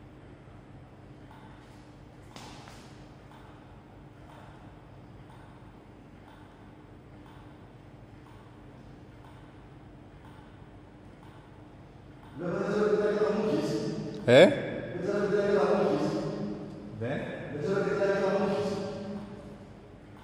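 A table tennis ball clicks sharply against a paddle and table.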